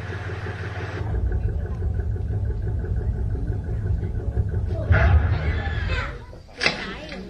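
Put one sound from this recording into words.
A deep engine rumbles loudly.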